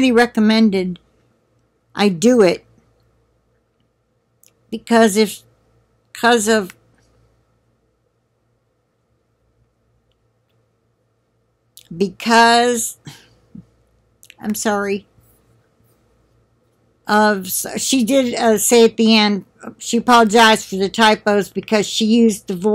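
An elderly woman speaks calmly into a nearby microphone, in short bursts with pauses.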